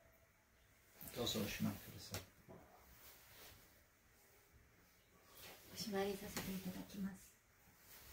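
A woman speaks softly and calmly nearby.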